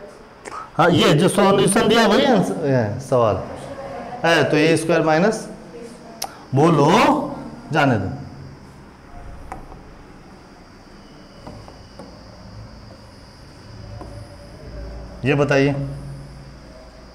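A man explains calmly and close by, in short bursts with pauses.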